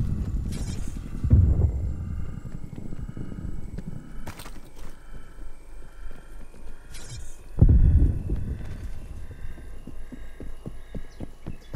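Footsteps thud on hard paving.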